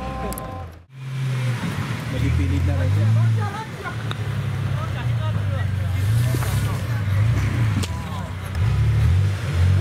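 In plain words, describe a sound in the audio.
An off-road vehicle's engine rumbles and revs as it climbs over rocks, outdoors.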